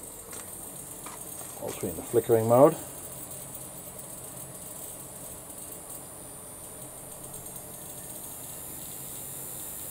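Lamps and a ballast buzz with a faint steady electrical hum.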